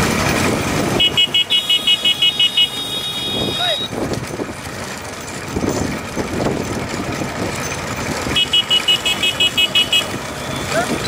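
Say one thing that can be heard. Motorcycle horns beep in quick repeated bursts.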